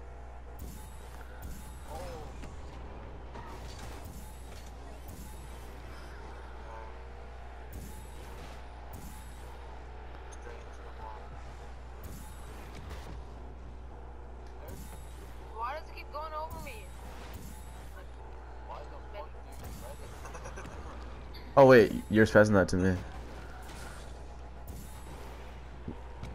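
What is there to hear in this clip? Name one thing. A video game car roars with a rocket boost.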